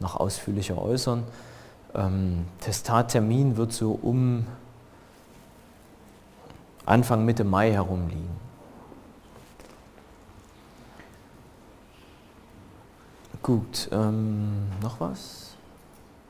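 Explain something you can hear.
A man speaks calmly in a large, echoing hall, pausing between phrases.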